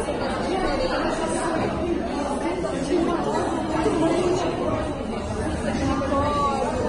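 A young woman speaks calmly and clearly close to a microphone.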